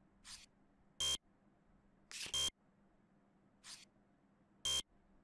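A short electronic buzz sounds several times.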